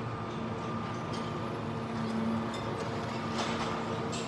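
Concrete cracks and crumbles as a demolition crusher bites into a wall.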